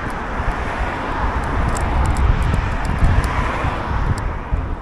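A car passes by on the road.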